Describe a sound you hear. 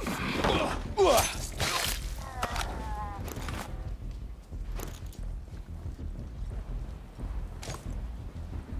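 Footsteps shuffle and gear rattles as a soldier creeps forward.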